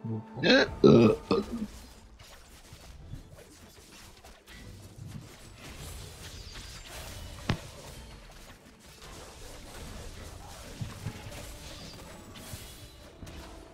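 Small fighters clash in a game battle, with spell blasts crackling and thudding throughout.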